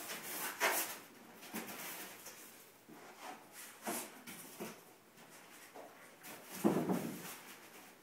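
Footsteps shuffle on a carpeted floor.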